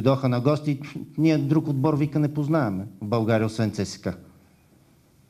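A middle-aged man speaks firmly into a microphone.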